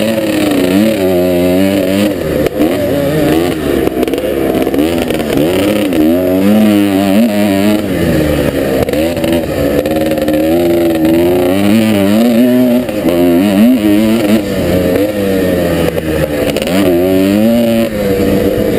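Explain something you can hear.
A dirt bike engine revs hard, rising and falling in pitch through gear changes.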